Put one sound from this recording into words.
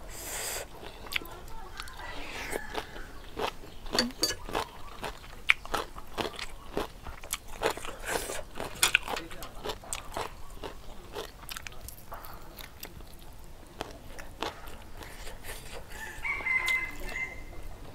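A young woman chews food with wet, crunchy smacking sounds close to the microphone.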